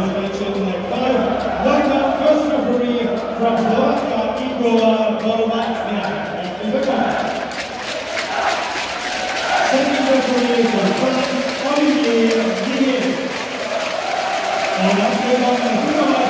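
A large crowd of fans sings a chant together loudly in an echoing hall.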